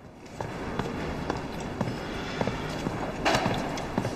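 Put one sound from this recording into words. Footsteps come down a stone staircase.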